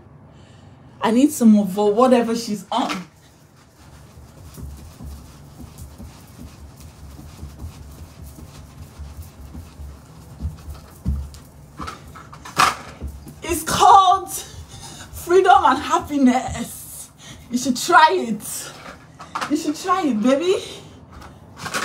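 A young woman speaks loudly and excitedly close by.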